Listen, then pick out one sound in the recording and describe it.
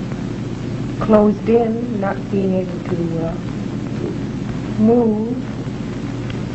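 A young woman speaks calmly and wearily, heard through an old, hissy recording.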